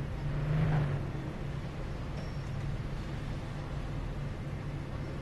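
A car engine hums steadily at low speed.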